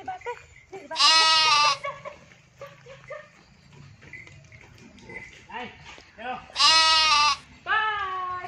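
Goats bleat nearby.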